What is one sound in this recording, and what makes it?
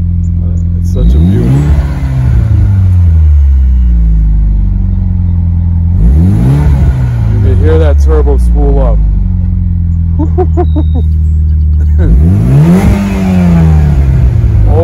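A car engine revs sharply up and down through a loud exhaust.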